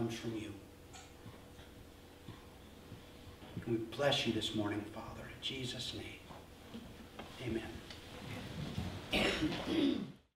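A man speaks calmly through a microphone in a room with a slight echo.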